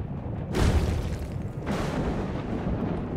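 A magical burst whooshes and shimmers as glittering shards fly.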